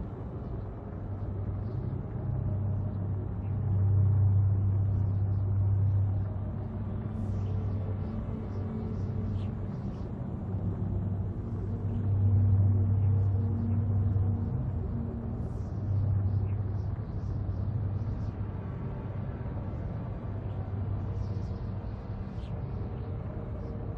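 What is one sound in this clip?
A spacecraft's engines rumble with a deep, steady hum that swells and eases.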